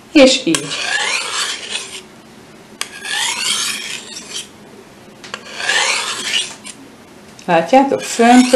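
A knife blade scrapes along a sharpening steel with a ringing rasp.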